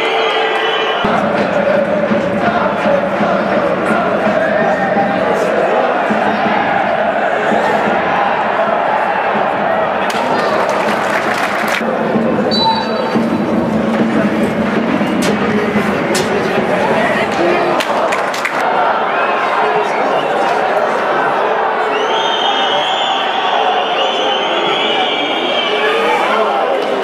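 Footballers shout to each other across an open stadium.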